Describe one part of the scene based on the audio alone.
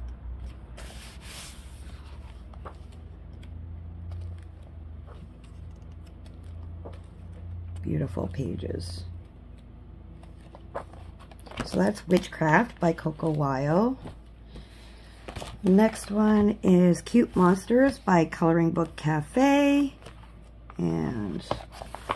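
Paper pages rustle as they are turned one by one.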